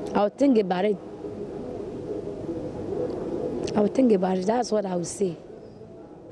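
A young woman speaks calmly close to microphones.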